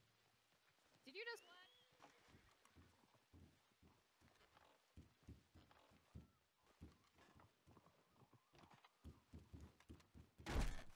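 Footsteps knock on wooden floorboards.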